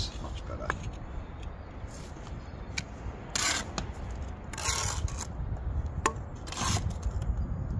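A trowel handle knocks sharply against bricks.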